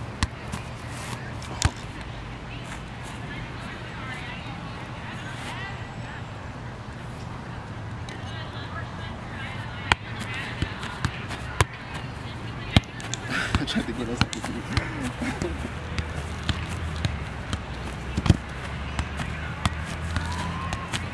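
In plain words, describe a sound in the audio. A soccer ball thumps off a foot outdoors.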